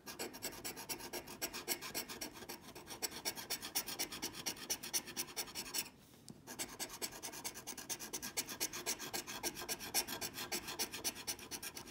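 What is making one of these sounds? A coin scratches rapidly across a scratch card, with a brief pause.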